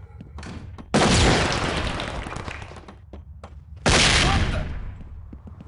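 Grenades burst with loud, hissing blasts.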